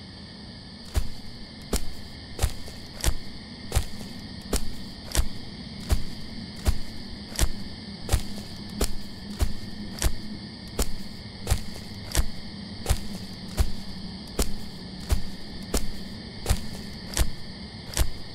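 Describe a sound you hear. Footsteps crunch slowly and steadily over dry leaves.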